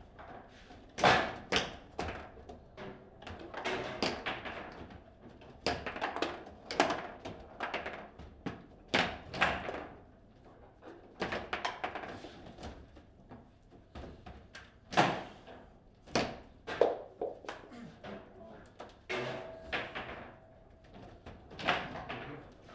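Table football rods clack and slam against the table's sides.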